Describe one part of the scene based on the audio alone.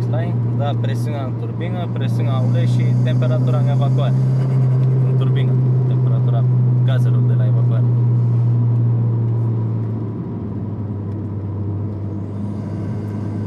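A car engine drones steadily inside the cabin.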